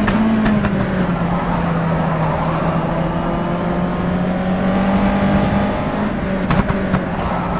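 Tyres rumble and thump over the track.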